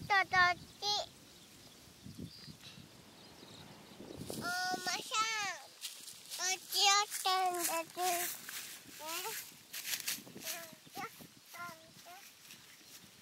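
A young child calls out in a high voice close by.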